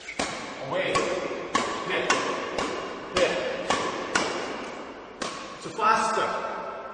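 A racket sharply strikes a shuttlecock again and again in a large echoing hall.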